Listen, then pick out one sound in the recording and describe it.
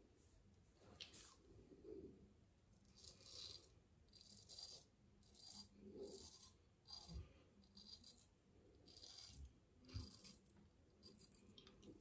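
A razor scrapes through stubble in short, repeated strokes, close by.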